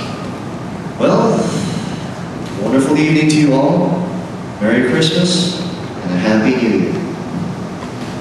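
A young man sings into a microphone, amplified through loudspeakers.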